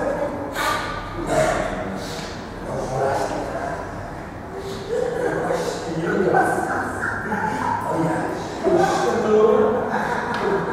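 A woman laughs.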